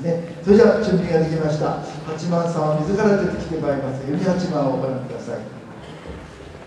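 An elderly man speaks calmly into a microphone over loudspeakers in a large hall.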